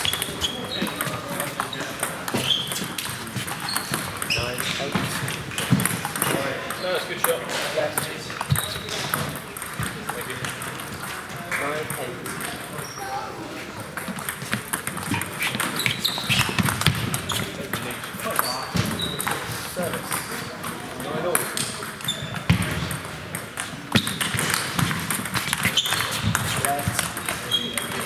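A table tennis ball clicks back and forth off paddles and a table in a large echoing hall.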